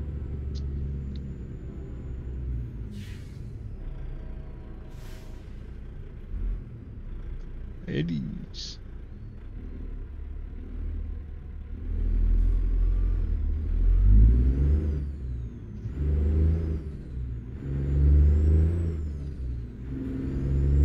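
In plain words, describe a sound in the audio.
A truck's diesel engine rumbles low and steady, growing louder as it speeds up.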